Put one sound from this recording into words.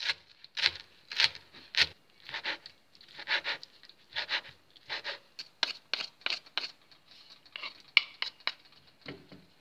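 A knife chops rapidly on a wooden board.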